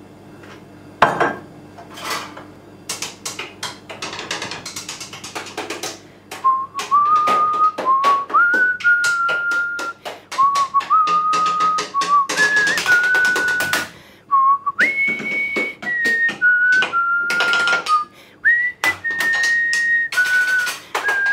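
A wooden spoon taps on hard objects in a quick rhythm.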